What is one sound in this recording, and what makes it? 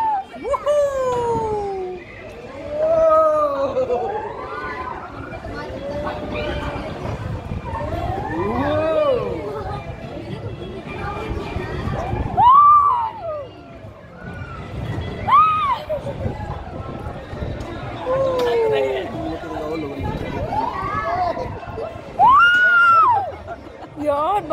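A young woman shrieks and laughs excitedly close by.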